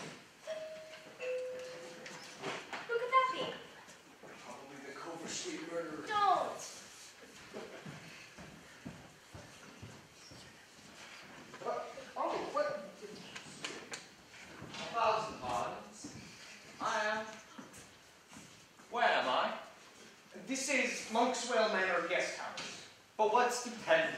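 A young woman speaks with feeling on a stage, her voice heard from across a small theatre.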